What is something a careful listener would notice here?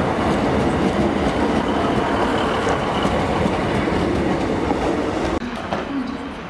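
A passenger train rumbles and clatters along the tracks close by.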